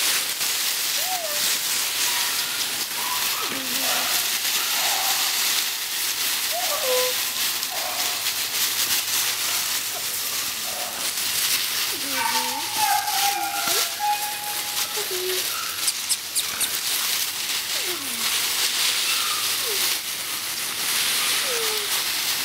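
Beagle puppies yelp and whine.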